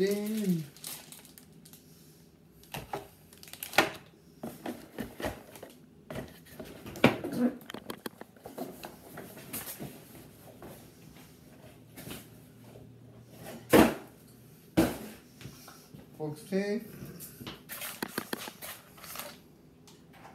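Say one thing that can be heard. Cardboard packaging rustles and thumps as a box is handled.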